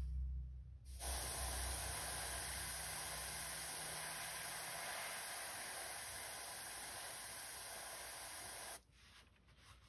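An airbrush hisses steadily, spraying paint.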